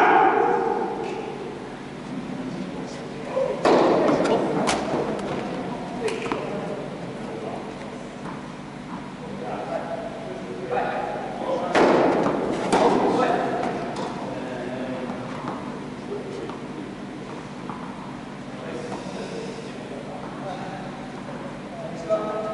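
Footsteps squeak and patter on the court.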